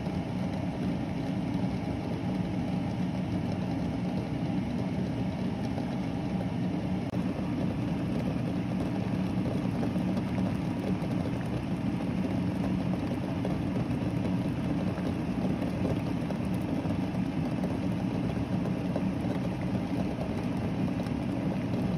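Water boils and bubbles steadily in a pot.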